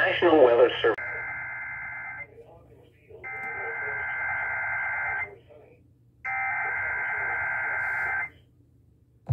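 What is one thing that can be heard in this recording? A stereo plays steady, high alert tones.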